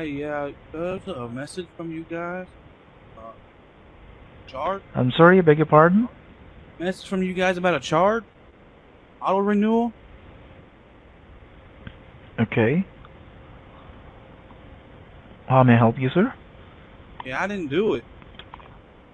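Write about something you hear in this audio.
A man reads out words in short bursts.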